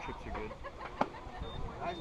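A metal bat cracks against a ball.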